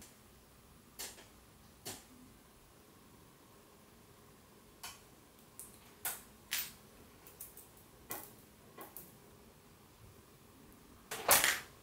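Small metal parts click against one another.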